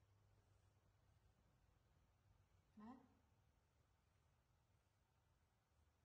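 A towel rubs softly against fur.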